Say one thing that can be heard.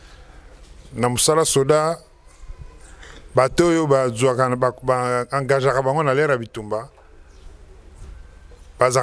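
A middle-aged man speaks loudly and with emphasis into a microphone, heard through loudspeakers outdoors.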